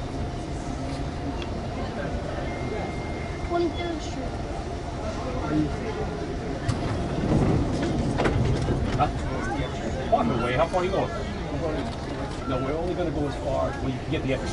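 A subway train rumbles and rattles along its tracks through a tunnel.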